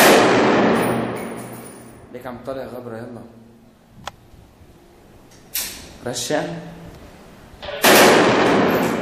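A rifle fires single shots that echo sharply in a bare room.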